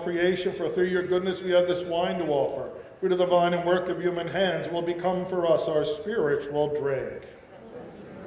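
An elderly man chants steadily through a microphone, in a room with some echo.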